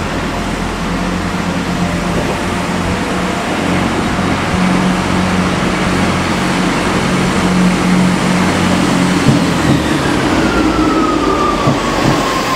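A second train hums as it pulls in and slows with a falling whine.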